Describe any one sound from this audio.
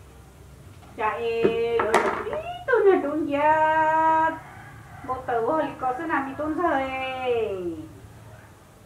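A woman sings loudly and with feeling, close by.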